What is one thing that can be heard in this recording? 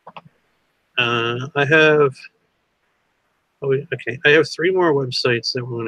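A man talks calmly through an online call.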